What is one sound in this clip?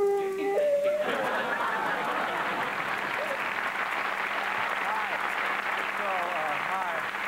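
A studio audience applauds and cheers.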